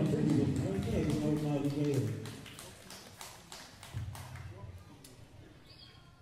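A drum kit plays a beat.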